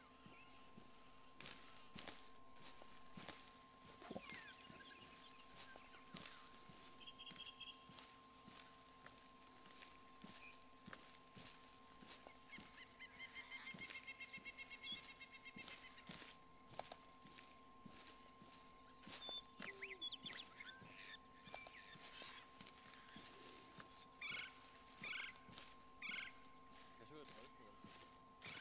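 Footsteps rustle through tall grass and leaves.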